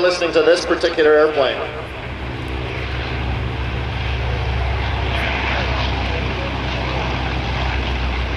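A propeller plane's engine roars steadily as it races past and lifts off.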